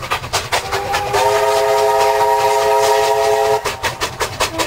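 A steam locomotive's whistle blows loudly.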